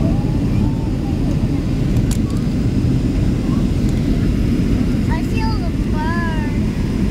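An airplane's engines roar steadily in the cabin.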